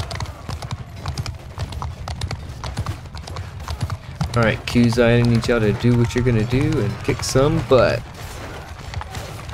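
Horse hooves pound the ground at a gallop.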